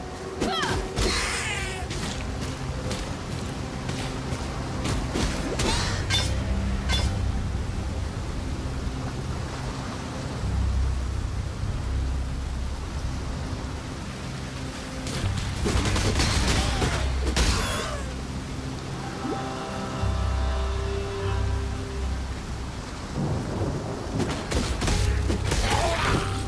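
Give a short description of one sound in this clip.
Magic spells whoosh and crackle in a fantasy video game.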